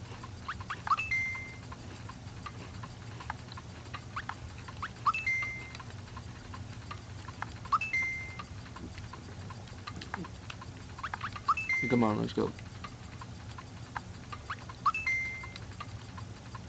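A video game gives short chiming blips.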